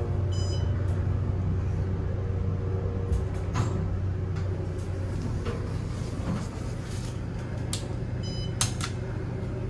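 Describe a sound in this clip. An elevator chime dings.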